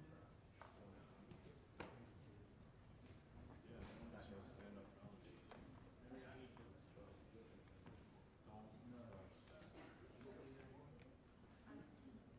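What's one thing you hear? A group of teenagers murmur and talk quietly.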